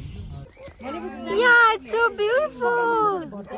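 A young child shouts excitedly nearby.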